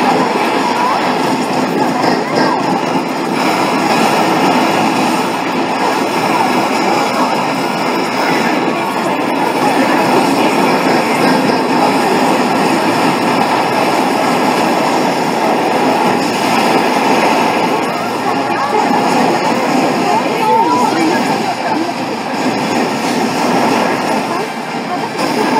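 Loud arcade game sound effects and music play through loudspeakers.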